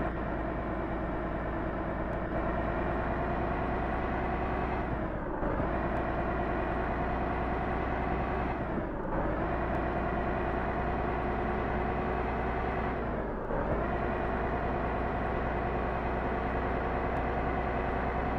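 A heavy truck engine drones steadily, its pitch rising and then dropping sharply with each gear change.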